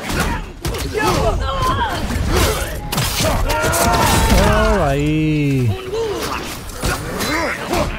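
Weapons strike and clash in a close fight.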